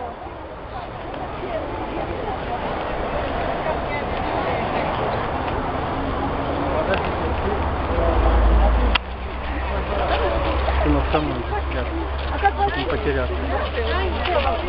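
A crowd of men and women murmurs and chatters nearby, outdoors.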